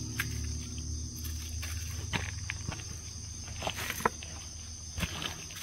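Boots crunch and shuffle on dry leaves and spiky husks.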